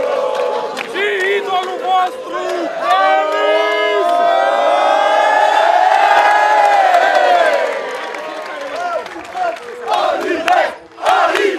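Young men cheer and shout close by.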